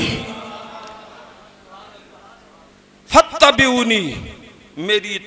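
A man preaches loudly and with passion through a microphone and loudspeakers, echoing in a hall.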